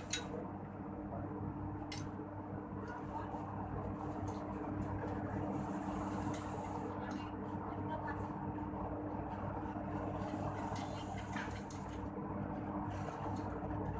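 Metal parts clink and tap.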